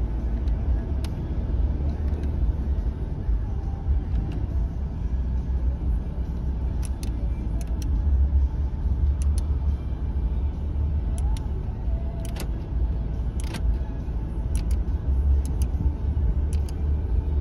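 Buttons click softly as a finger presses them.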